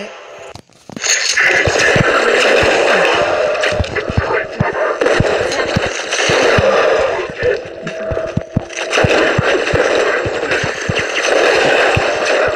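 Rapid gunfire rattles and echoes in bursts.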